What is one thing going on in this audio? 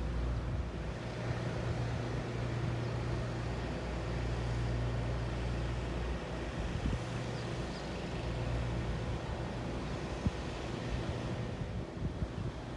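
Floodwater flows and laps steadily outdoors.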